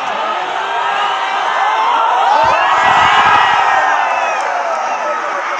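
Nearby fans cheer loudly with raised arms.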